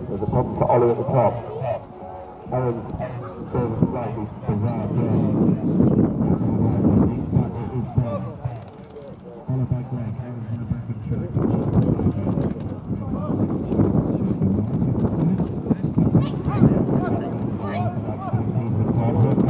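Horses' hooves thud softly on sand.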